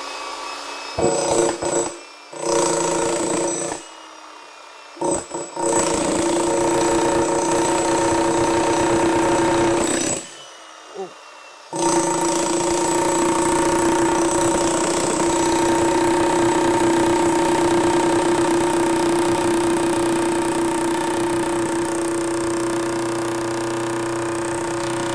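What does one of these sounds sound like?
A jackhammer pounds and whines loudly, breaking up concrete.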